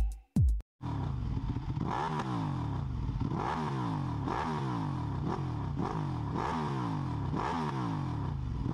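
A motorcycle engine revs up again and again.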